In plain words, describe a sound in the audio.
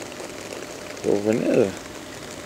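A fishing reel whirs as its handle is turned.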